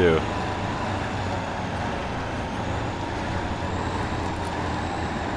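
A heavy truck engine rumbles and strains at low speed.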